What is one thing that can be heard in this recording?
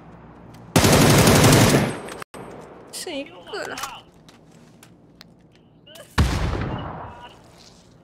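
Gunfire rings out in loud rapid bursts.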